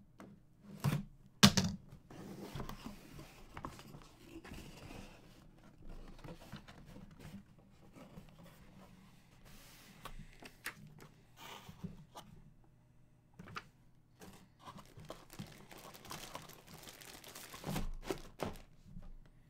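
Cardboard rustles and taps as cards are handled in a box.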